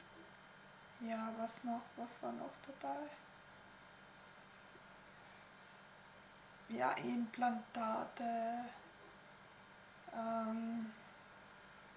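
A woman speaks calmly into a close microphone, in short phrases with pauses.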